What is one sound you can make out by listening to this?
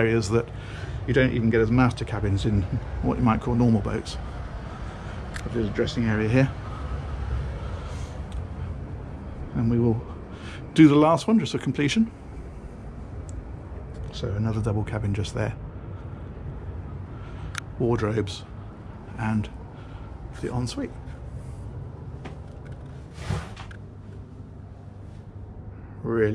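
A middle-aged man talks calmly and close into a microphone, in short phrases with pauses.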